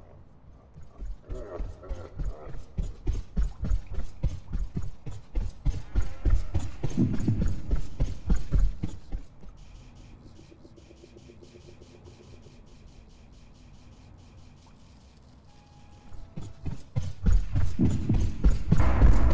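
Quick footsteps patter as a game character runs.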